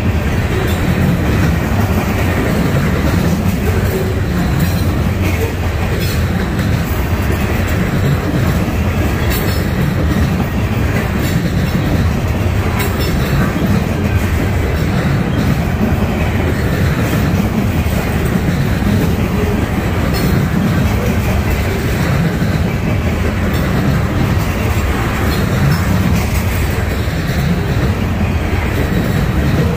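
A long freight train rolls past close by with a steady low rumble.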